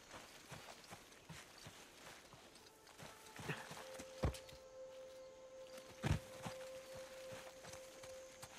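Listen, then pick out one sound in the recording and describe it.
Leaves rustle as someone pushes through dense plants.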